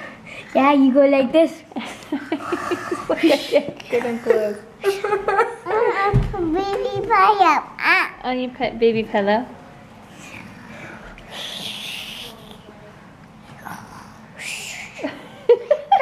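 A young girl talks and giggles close by.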